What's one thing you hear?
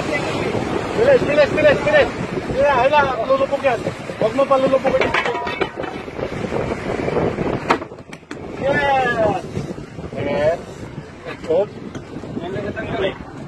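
A man talks loudly nearby.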